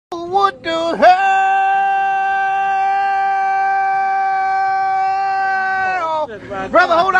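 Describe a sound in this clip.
A young man holds a long, loud drawn-out cry.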